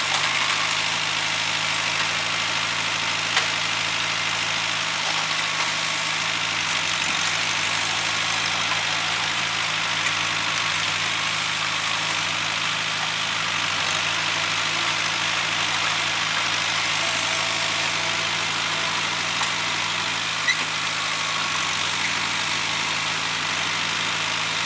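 A tractor engine runs steadily nearby, outdoors.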